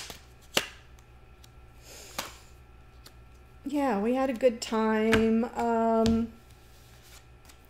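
Cards shuffle and tap on a table.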